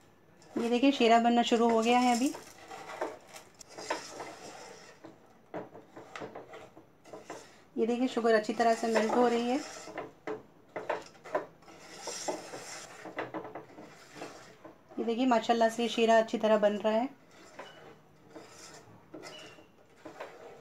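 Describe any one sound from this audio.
A spatula scrapes and stirs food in a metal pot.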